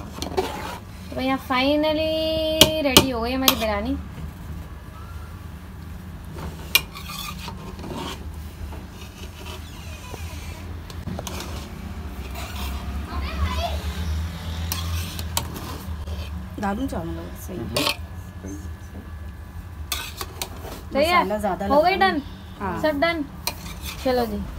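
A metal spoon scrapes and clinks against a metal pot.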